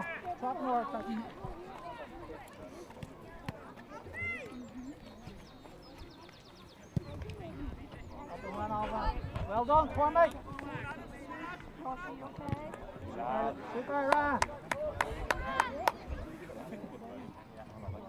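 Spectators shout and call out from the sidelines outdoors.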